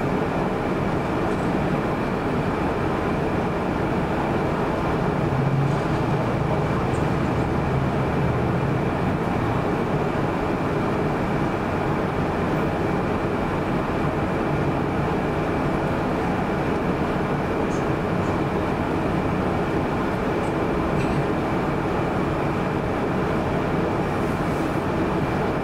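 Cars and trucks drive steadily through a busy intersection outdoors.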